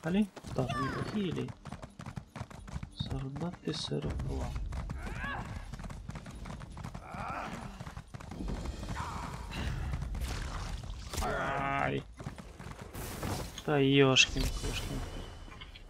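A horse gallops with thudding hooves.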